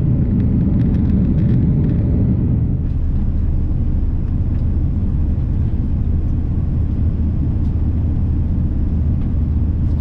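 A jet airliner's engines roar with a deep, steady rumble heard from inside the cabin.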